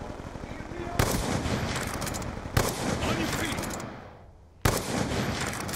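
A rifle fires single loud shots, each followed by a ringing echo.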